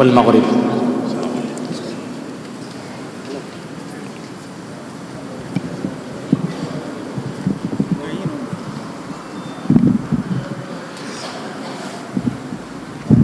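A crowd of men murmurs and shuffles in an echoing hall.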